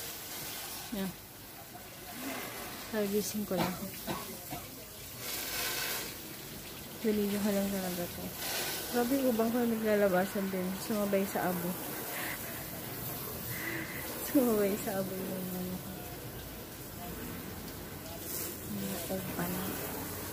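A young woman talks calmly, close by.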